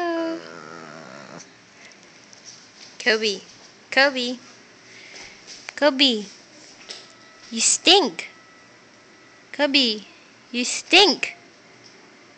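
A small dog howls and yowls in short, rising and falling bursts close by.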